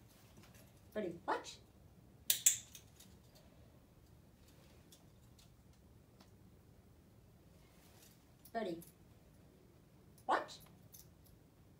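A woman gives short, sharp commands close by.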